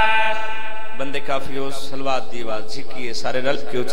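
A man speaks loudly and with passion through a microphone.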